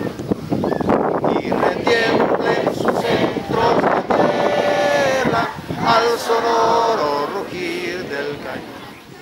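A group of children sing loudly together.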